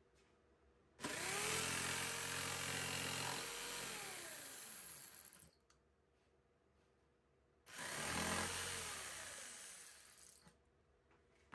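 A jigsaw buzzes loudly, cutting through wood in two bursts.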